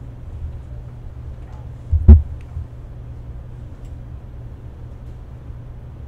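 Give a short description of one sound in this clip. A marimba is played softly with mallets.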